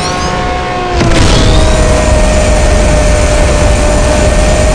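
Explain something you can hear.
A nitro boost whooshes and the supercar engine surges louder.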